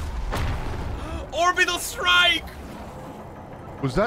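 A man shouts excitedly into a microphone.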